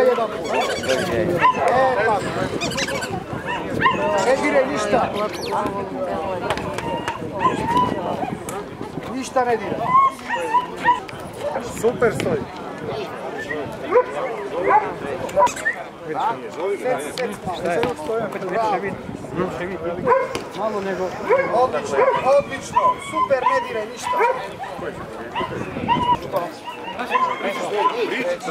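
Large dogs bark loudly outdoors.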